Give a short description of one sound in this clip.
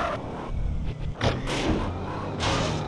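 A car thuds and bangs as it hits a kerb.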